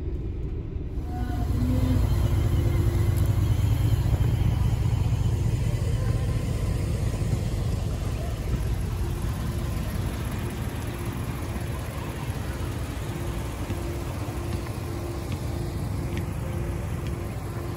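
A V8 pickup idles with a deep exhaust rumble.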